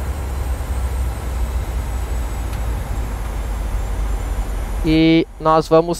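Aircraft engines rumble low and steadily.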